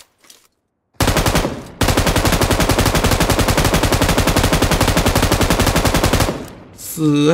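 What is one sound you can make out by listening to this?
Rapid automatic gunfire rattles loudly in a video game.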